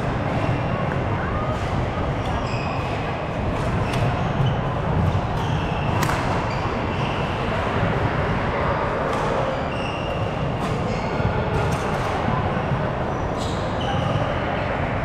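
Shuttlecocks are struck with sharp racket pops.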